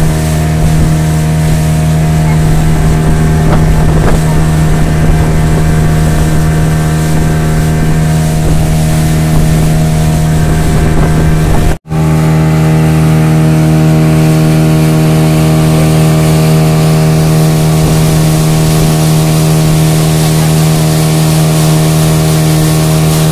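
A boat engine drones steadily and loudly.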